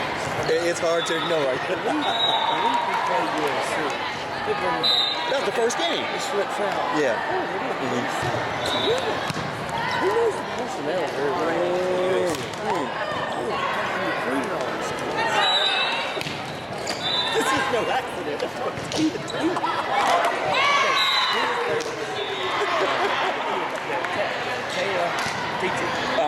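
Young girls shout and call out to each other in an echoing gym.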